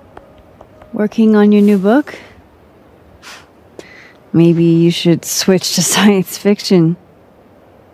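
A young woman speaks calmly and warmly.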